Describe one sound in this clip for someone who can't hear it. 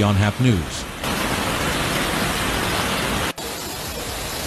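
Floodwater rushes and churns loudly.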